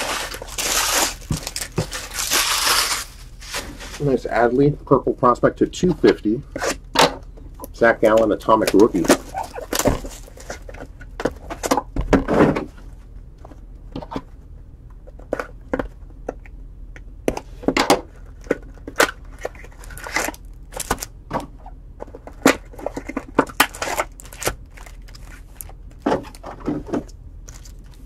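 Cardboard and plastic wrap crinkle and rustle as hands handle a box.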